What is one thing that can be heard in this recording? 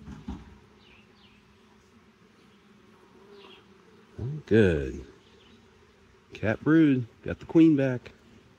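Honeybees hum and buzz close by.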